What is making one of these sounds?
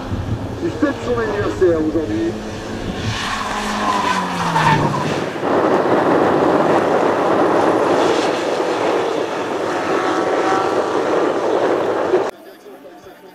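A rally car engine roars and revs hard.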